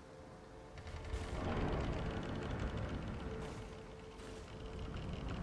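A heavy door grinds slowly open.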